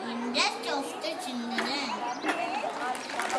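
A young child speaks into a microphone over loudspeakers.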